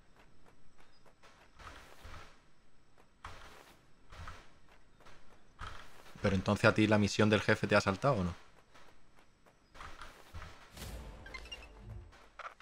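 Footsteps rustle through grass.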